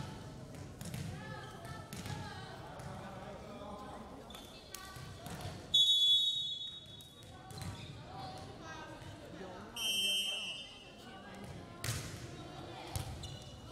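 Young women call out to each other in a large echoing hall.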